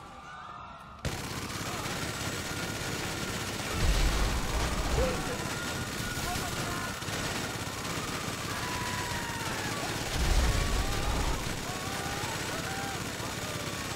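A machine gun fires a rapid, continuous stream of shots.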